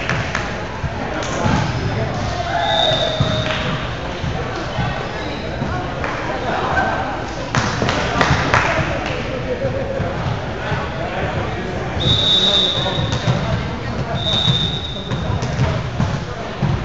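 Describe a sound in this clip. A volleyball thumps as players strike it.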